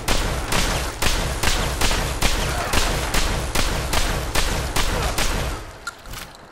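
A heavy gun fires in rapid, booming shots.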